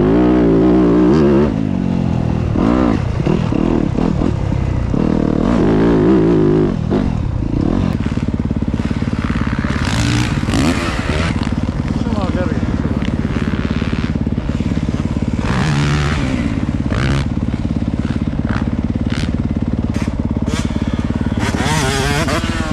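A dirt bike engine revs hard close by and then idles with a steady putter.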